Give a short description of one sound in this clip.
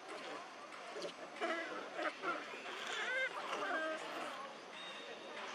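Monkeys squeal and chatter close by.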